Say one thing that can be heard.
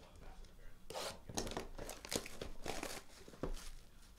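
Plastic wrap crinkles and tears.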